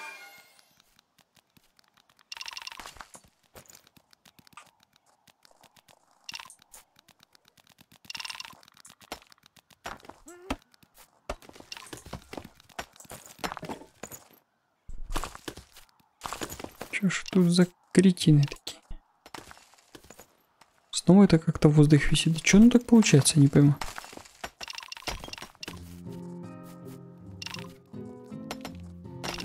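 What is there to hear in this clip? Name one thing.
Small picks tap and chip at stone in a video game.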